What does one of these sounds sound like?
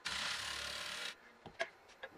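A wood lathe gouge shaves a spinning wooden bowl with a rushing hiss.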